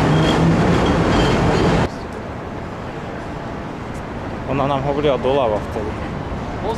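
Traffic rumbles steadily along a busy city street.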